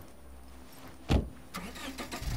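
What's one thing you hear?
A car door slams shut.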